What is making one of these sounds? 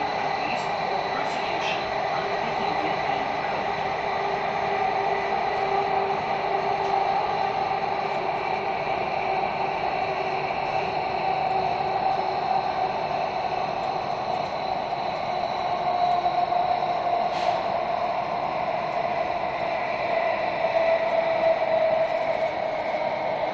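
A metro train hums and rumbles steadily as it runs.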